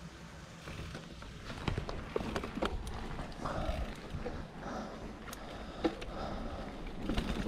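Bicycle tyres roll over tarmac and then rough gravel.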